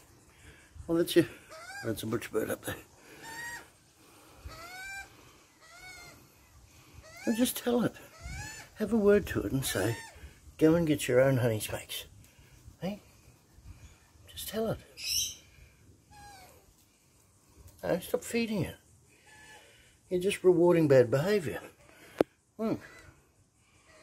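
Magpies warble and carol close by.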